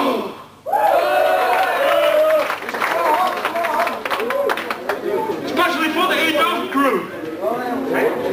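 A rock band plays loud music through loudspeakers.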